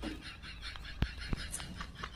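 Bare feet patter on hard ground.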